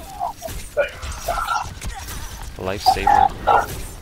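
A video game blaster fires rapid shots.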